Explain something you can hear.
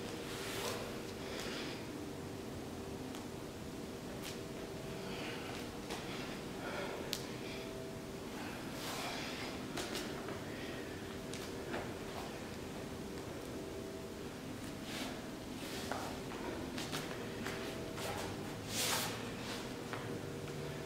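Hands and feet thump softly on a mat.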